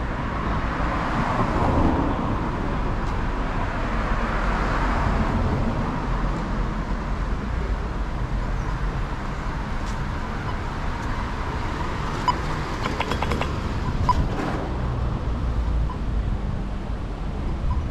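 Traffic hums steadily along a nearby street outdoors.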